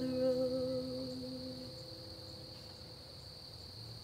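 An acoustic guitar is strummed and its chord rings out, slowly fading.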